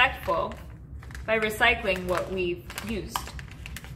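Paper rustles and crinkles as it is folded by hand.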